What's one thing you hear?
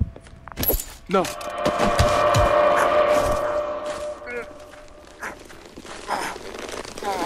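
A man grapples with another man, grunting and scuffling.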